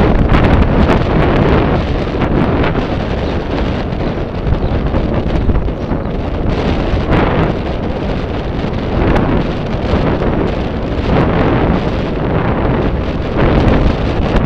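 Wind roars loudly across a moving bicycle.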